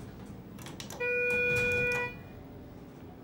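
An elevator button gives a long beep when pressed.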